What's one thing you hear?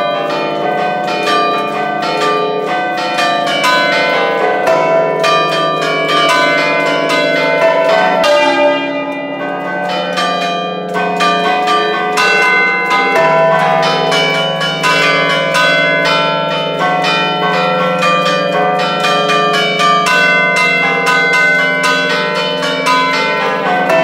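A large bell swings and rings loudly, clanging again and again.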